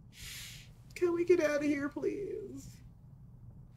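A young woman speaks briefly and emotionally, close by.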